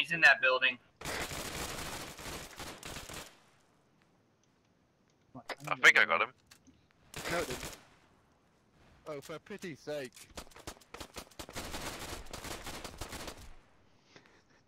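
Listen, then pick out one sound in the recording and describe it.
Rifles fire in rapid bursts at close range.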